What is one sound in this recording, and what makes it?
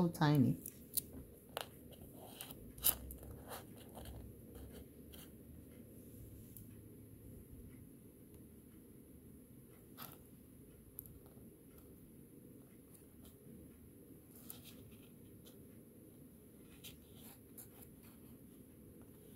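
Small beads click and rattle softly under fingers.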